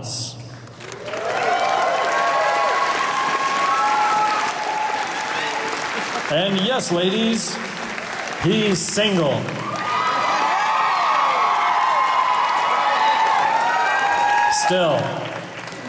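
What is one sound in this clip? An audience cheers and whistles.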